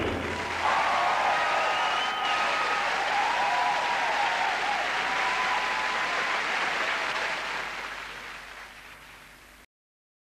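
A large audience applauds loudly in a big echoing hall, then fades away.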